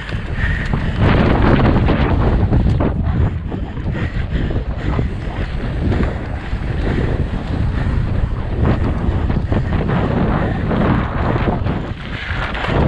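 Wind rushes loudly past a fast-riding cyclist.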